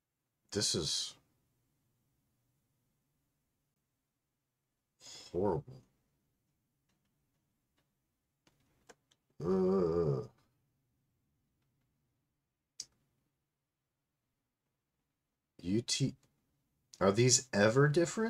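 A middle-aged man speaks calmly into a close microphone, in short bursts.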